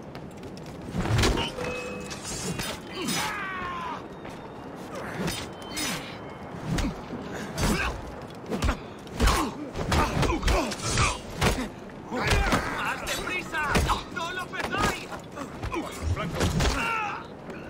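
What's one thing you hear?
Heavy blows thud during a scuffle.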